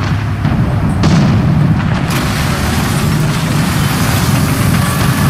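Tank tracks clank over rough ground.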